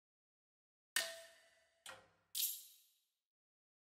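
Menu clicks and chimes sound in short bursts.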